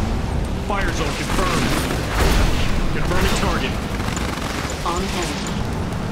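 Explosions rumble and crack in a battle.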